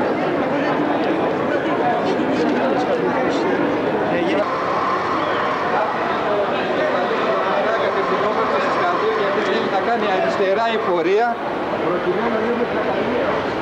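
A crowd of people talks and murmurs close by outdoors.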